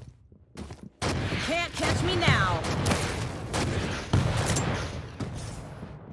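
Explosions thud and rumble.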